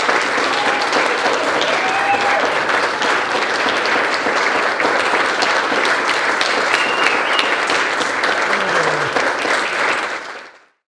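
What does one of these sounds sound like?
A large crowd sings together in an echoing hall.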